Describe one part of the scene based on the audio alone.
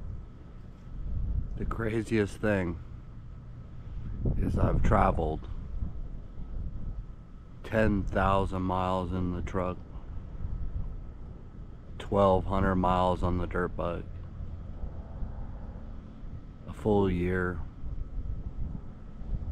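Leaves rustle softly in a light breeze.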